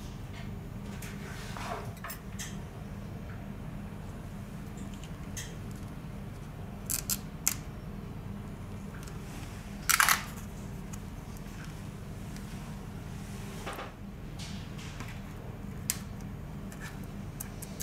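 Small plastic and metal parts click and tap as they are pried apart.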